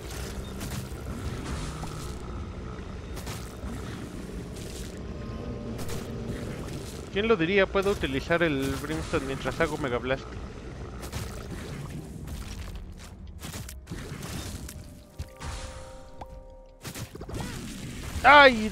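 A video game laser beam blasts with a steady roar.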